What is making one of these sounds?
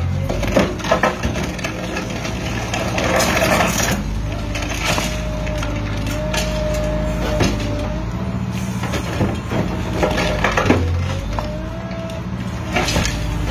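Broken chunks of rubble clatter onto the ground.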